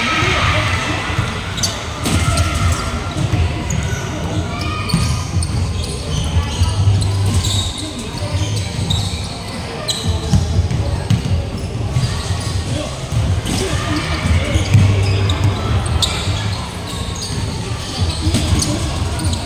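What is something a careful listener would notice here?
Young men call out to each other during play.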